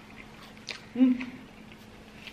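A woman makes a short sound with her voice close to a microphone.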